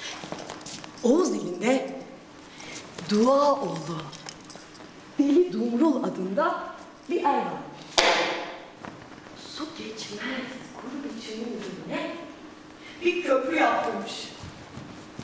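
A young woman speaks with feeling, heard from a distance in an echoing hall.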